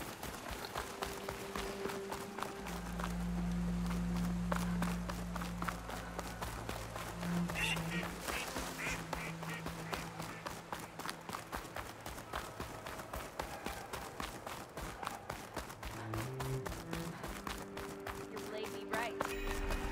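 Footsteps crunch quickly on gravel and snow as someone runs.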